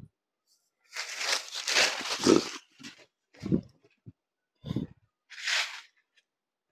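Cloth rustles and flaps as it is handled and unfolded.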